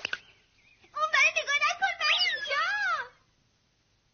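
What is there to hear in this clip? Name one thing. A man speaks loudly in an excited cartoon voice.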